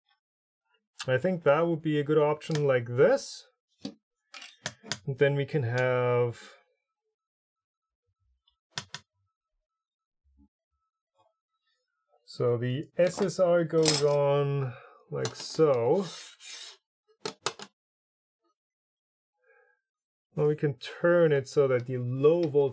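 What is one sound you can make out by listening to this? A man speaks calmly and closely, with pauses, into a microphone.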